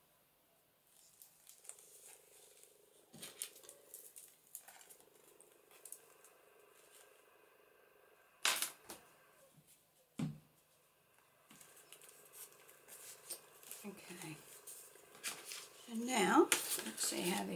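Paper pages rustle and crinkle as they are turned and pressed flat.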